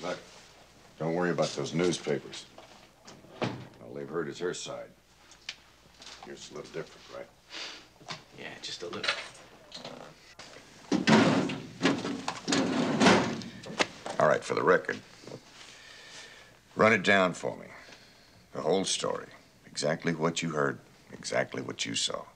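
A young man answers quietly, close by.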